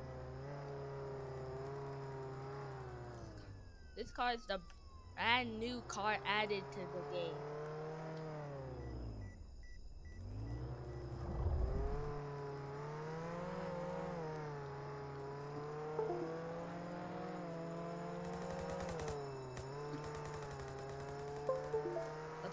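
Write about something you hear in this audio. A car engine hums and revs as a vehicle drives.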